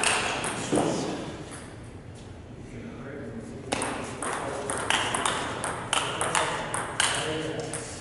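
A ping-pong ball clicks quickly back and forth between paddles and a table in an echoing hall.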